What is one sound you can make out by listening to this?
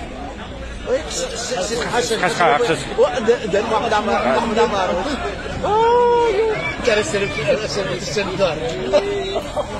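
Men shout loudly and excitedly nearby.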